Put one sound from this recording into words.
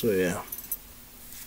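A man says a few words close to the microphone.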